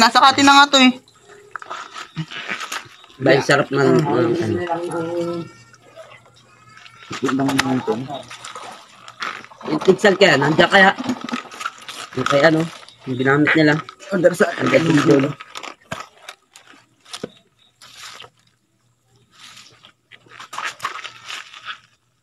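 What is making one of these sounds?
Wet flesh squelches under a young man's hands.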